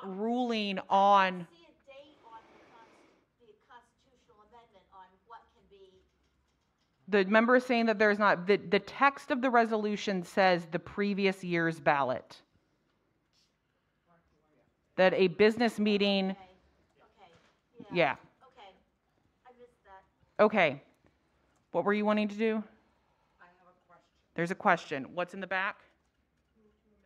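A woman speaks calmly into a microphone, heard through loudspeakers in a large room.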